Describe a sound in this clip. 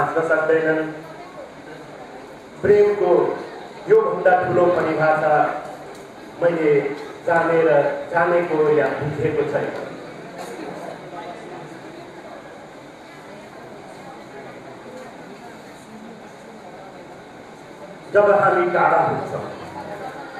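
A middle-aged man recites slowly and expressively into a microphone, with long pauses.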